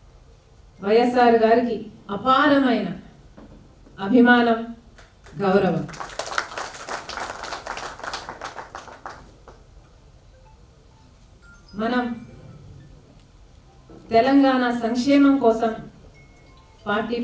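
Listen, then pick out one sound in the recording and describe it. A woman sings into a microphone, heard through loudspeakers.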